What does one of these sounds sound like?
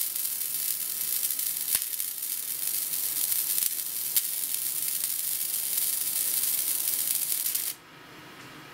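A laser engraver hisses steadily as it cuts.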